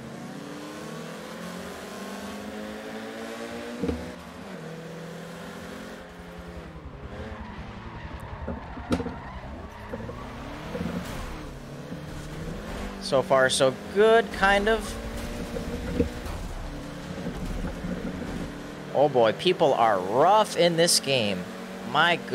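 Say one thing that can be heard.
A race car engine roars and revs up and down.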